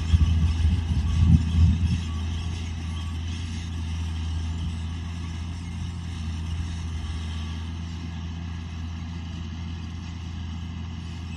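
A seed drill rattles and clatters over the soil.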